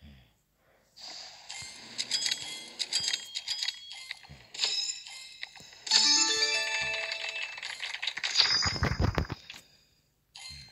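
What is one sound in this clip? Coins jingle and clink rapidly in a game.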